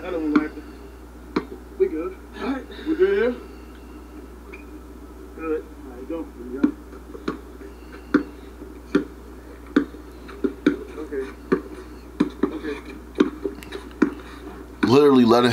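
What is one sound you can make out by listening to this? A basketball bounces repeatedly on an outdoor court.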